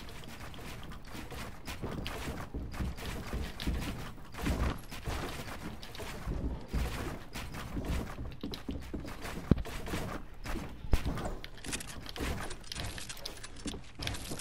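Building pieces snap into place with rapid clattering thuds.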